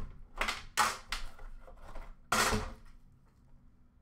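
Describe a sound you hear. A metal tin clinks as it is moved.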